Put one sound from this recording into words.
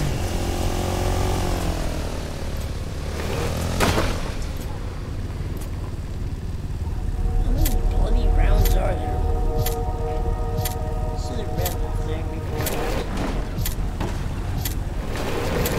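A small quad bike engine rumbles and revs.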